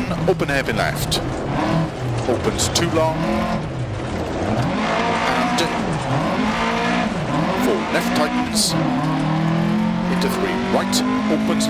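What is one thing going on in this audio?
Gravel clatters against the underside of a car.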